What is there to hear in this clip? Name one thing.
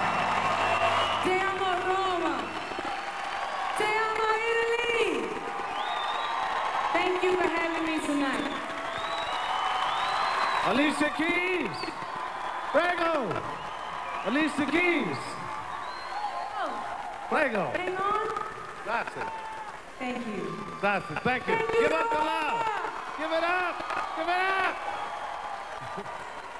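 A woman sings through a microphone over loudspeakers.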